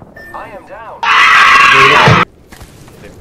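A goat screams loudly.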